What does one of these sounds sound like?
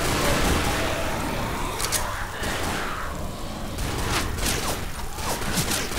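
Flames crackle and roar nearby.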